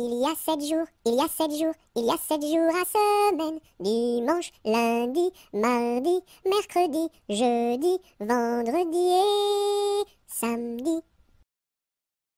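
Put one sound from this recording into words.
A cartoon witch speaks in a croaky, high voice with animation.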